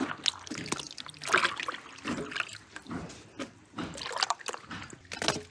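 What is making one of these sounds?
Strawberries splash and plop into water.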